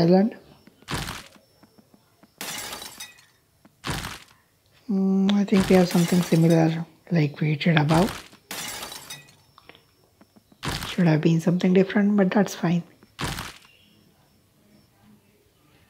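Video game sound effects chime as rewards are collected.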